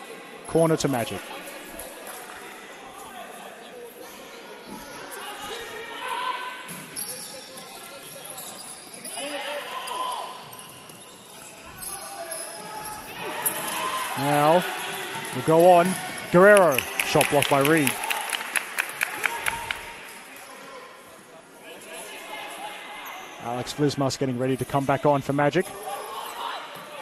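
Young players shout loudly in a large echoing hall.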